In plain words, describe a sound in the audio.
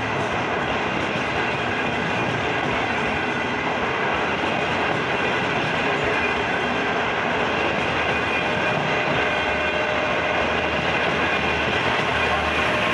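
Train wheels clatter rhythmically over the rail joints.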